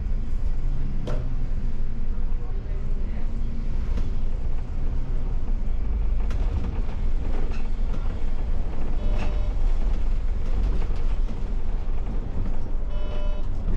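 A bus engine hums and rumbles steadily from inside the cab.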